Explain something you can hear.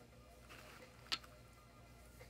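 A plastic part clicks down onto a soft padded surface.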